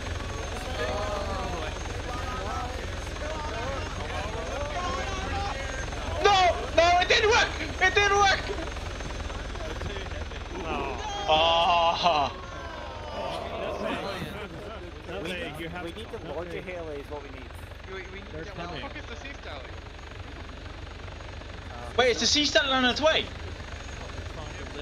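Young men talk over an online voice chat.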